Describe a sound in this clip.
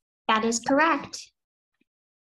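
A young girl speaks briefly over an online call.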